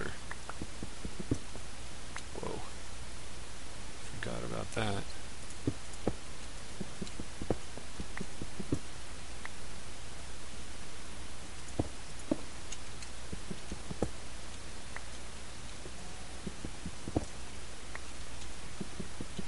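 Stone blocks crunch repeatedly as they are dug out in a game.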